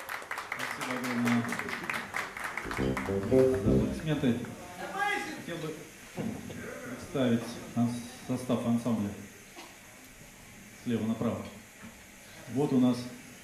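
A man speaks into a microphone through loudspeakers in a reverberant room.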